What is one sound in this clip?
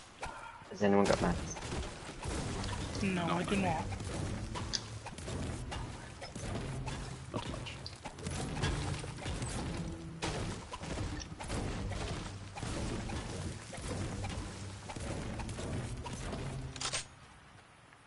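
A pickaxe strikes rock and wood with repeated thuds.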